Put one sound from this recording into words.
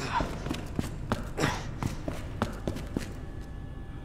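Footsteps thud on wooden stairs.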